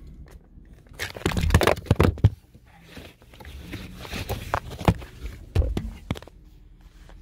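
A man speaks close to a phone's microphone.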